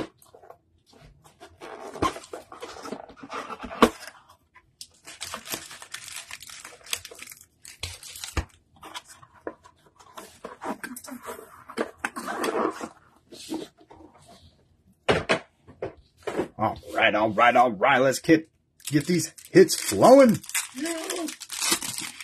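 Plastic wrappers crinkle and rustle as they are handled.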